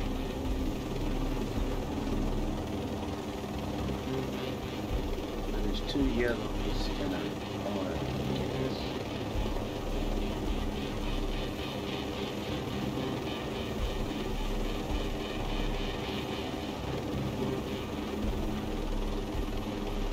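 A helicopter's rotor thumps in steady flight.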